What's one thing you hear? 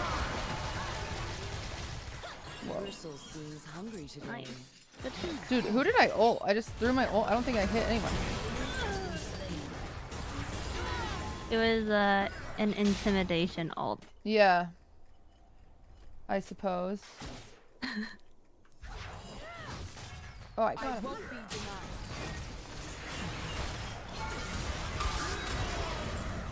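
Game sound effects of spells and hits play.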